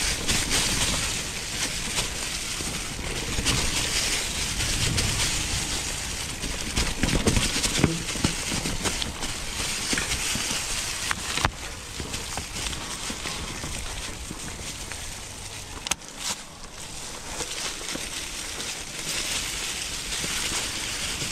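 Bicycle tyres crunch over dry leaves and rough ground.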